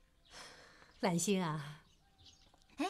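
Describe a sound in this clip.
A woman speaks warmly and cheerfully nearby.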